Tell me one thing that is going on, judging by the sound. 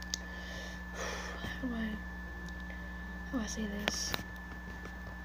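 A young boy speaks softly, close to the microphone.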